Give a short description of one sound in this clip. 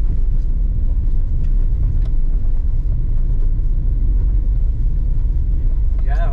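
Loose gravel crackles under the tyres.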